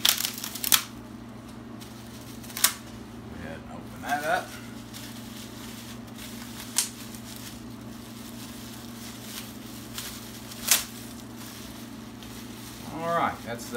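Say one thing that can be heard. Bubble wrap crinkles and rustles as it is unwrapped.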